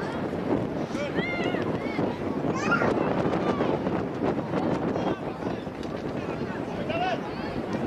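Young women shout and call to each other outdoors across an open field.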